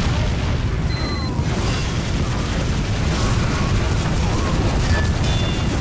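Heavy metal robots clank and stomp close by.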